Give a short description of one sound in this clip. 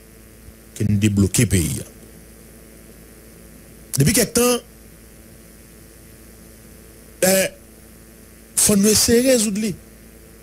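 A man speaks into a close microphone in short bursts with pauses.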